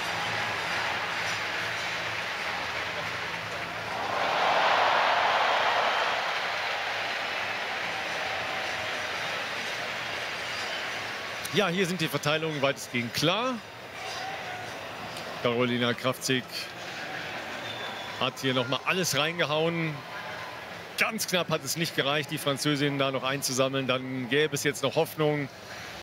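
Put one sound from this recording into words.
A large crowd cheers and roars in a big open stadium, swelling for a few seconds.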